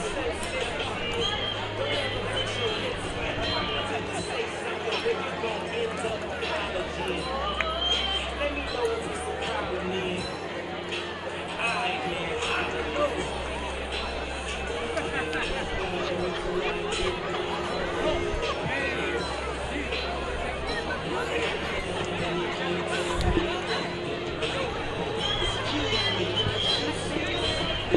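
A crowd in a stadium murmurs and cheers in the open air.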